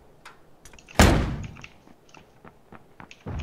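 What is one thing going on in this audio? A grenade explodes nearby with a loud boom.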